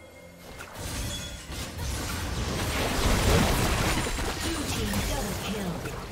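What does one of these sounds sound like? Spell blasts and weapon clashes crackle and boom in a busy video game battle.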